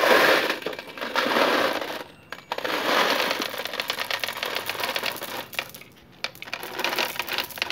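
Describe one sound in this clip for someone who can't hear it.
Water pours from a bottle and splashes onto soil.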